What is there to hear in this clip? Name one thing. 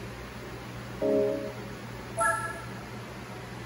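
A game console plays two short electronic menu beeps.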